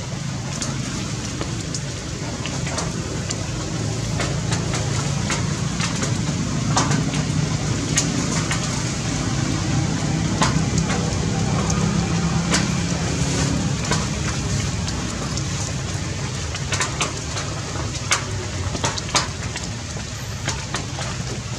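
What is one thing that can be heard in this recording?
A baby monkey suckles with soft smacking sounds.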